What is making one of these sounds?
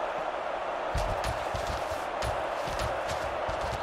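Football players' pads clash with dull thuds.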